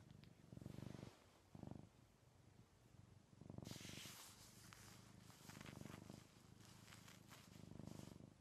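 A woman kisses a cat softly.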